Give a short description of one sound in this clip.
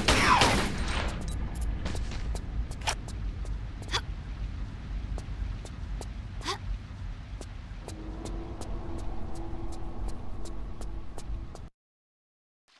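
Footsteps patter on stone.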